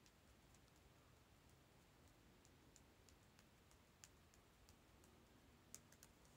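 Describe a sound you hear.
Fingers rustle through hair close by.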